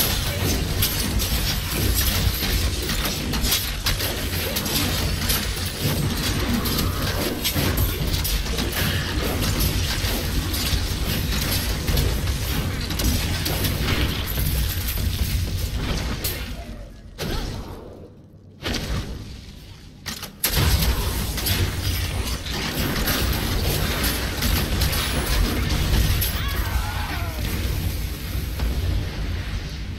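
Spells crackle and explode in rapid bursts of combat.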